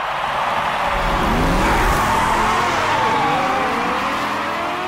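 A car engine revs up and rises in pitch.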